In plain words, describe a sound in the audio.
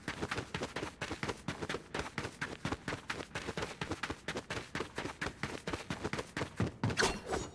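Quick footsteps patter on dirt in a game.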